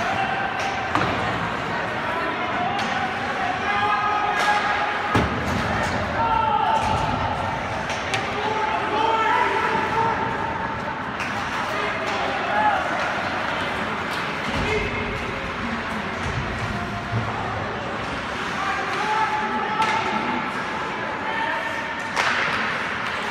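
Hockey sticks clack against the puck now and then.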